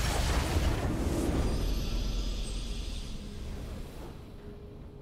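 A triumphant game victory sound swells and then fades away.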